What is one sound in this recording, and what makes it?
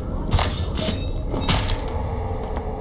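A creature snarls and growls up close.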